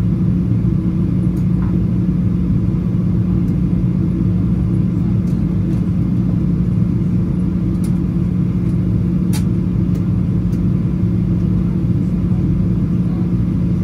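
A jet engine drones steadily with a low, constant roar inside an airplane cabin.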